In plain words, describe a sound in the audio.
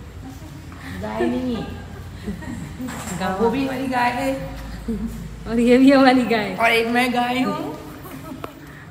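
A woman talks and laughs close by with animation.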